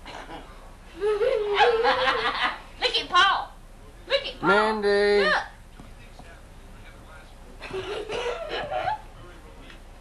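A woman talks and laughs cheerfully nearby.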